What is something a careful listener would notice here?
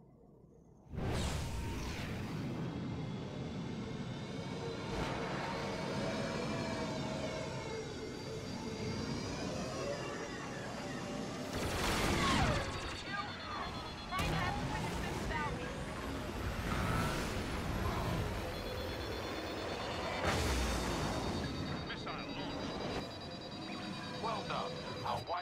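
A starfighter's engines roar steadily.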